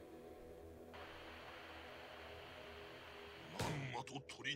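A television hisses with static.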